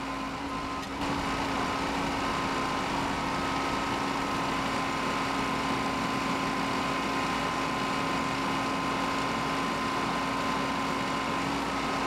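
A backhoe's hydraulics whine as the arm moves.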